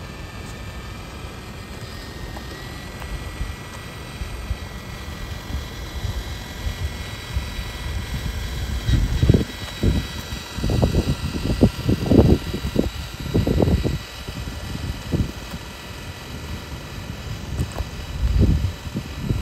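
A small electric motor whines steadily.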